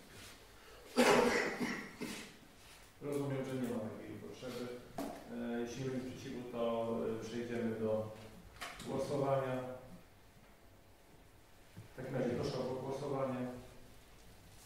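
A man speaks calmly into a microphone in a large room.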